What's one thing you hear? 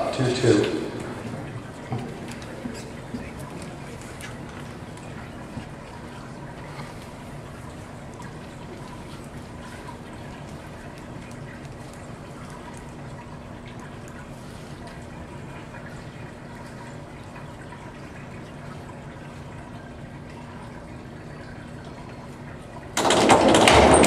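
A crowd murmurs quietly in an echoing hall.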